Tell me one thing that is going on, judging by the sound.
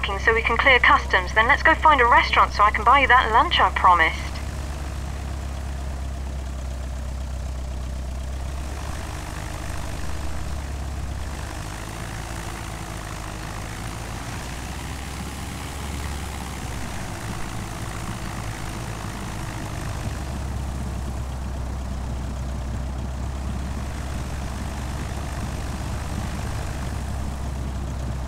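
A small propeller plane's engine hums steadily as it taxis.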